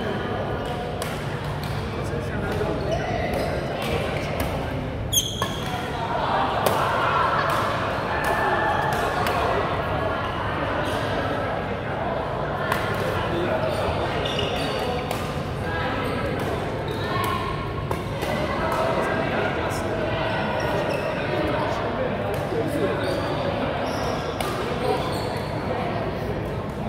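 Many voices chatter around a large echoing hall.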